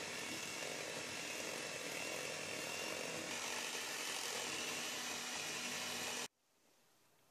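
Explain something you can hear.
An electric hand mixer whirs steadily as it whips cream in a metal bowl.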